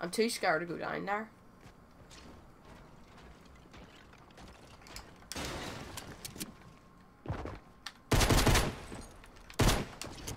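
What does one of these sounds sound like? Footsteps clang on a metal floor.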